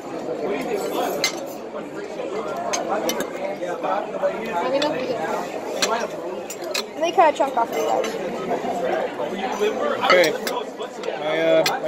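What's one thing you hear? Many men and women chatter in a busy room.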